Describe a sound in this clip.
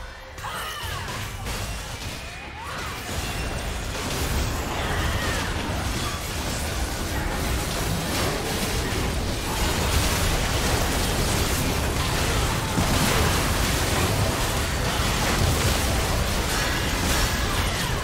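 Game spell effects crackle and blast in quick succession during a fight.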